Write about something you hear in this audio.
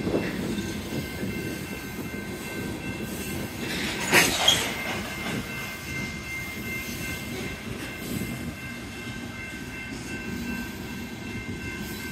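A railroad crossing bell rings steadily.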